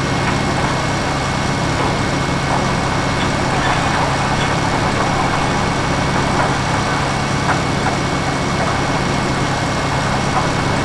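A diesel tractor engine drones.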